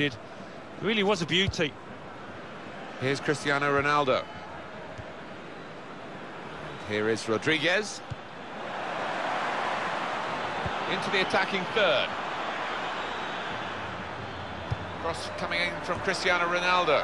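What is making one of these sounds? A stadium crowd roars and murmurs throughout.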